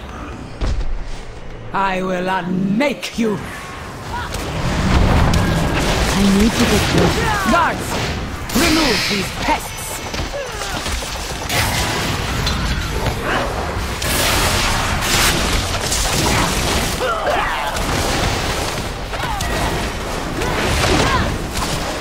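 Weapons clang and strike during the fight.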